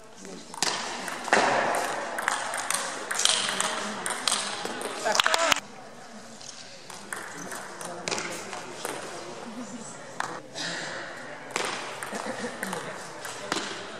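A ping-pong ball clicks sharply back and forth off paddles and a table in a large echoing hall.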